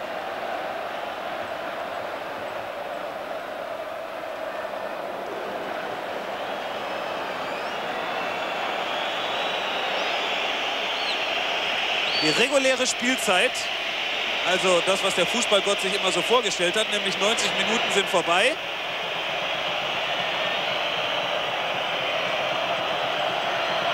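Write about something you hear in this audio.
A large stadium crowd roars and chants steadily, slowly growing louder.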